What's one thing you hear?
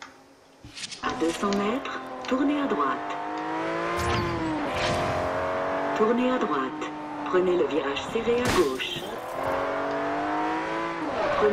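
A car engine revs hard, rising and falling in pitch as it speeds up and shifts gears.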